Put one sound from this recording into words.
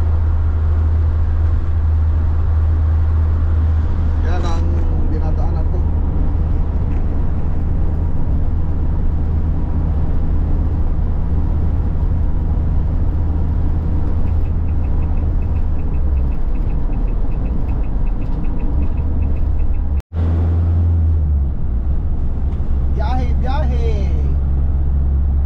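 An engine hums low and steady while a vehicle drives.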